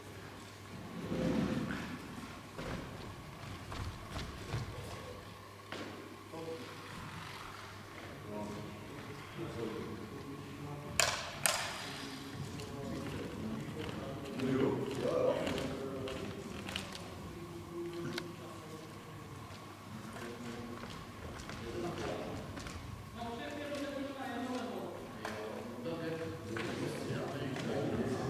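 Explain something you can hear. The propeller of a small electric model airplane whirs in a large echoing hall.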